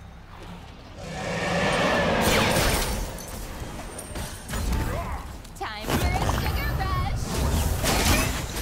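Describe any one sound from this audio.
Magic blasts whoosh and crackle in a game fight.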